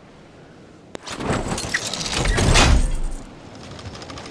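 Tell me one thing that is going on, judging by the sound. A glider opens with a loud, sudden whoosh.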